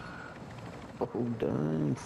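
A young man speaks with animation through a headset microphone.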